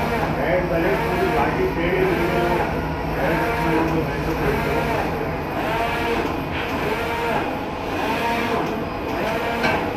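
A printer's print head whirs back and forth in steady, repeating sweeps.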